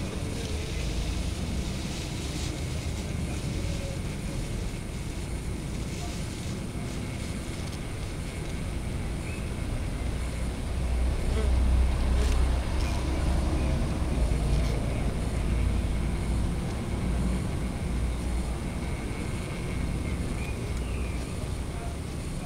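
Bees buzz and hum steadily inside a hive.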